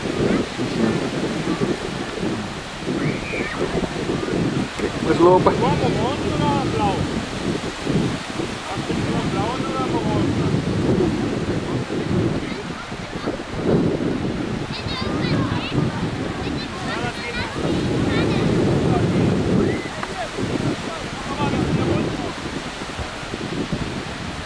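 Wind blows hard and rumbles outdoors.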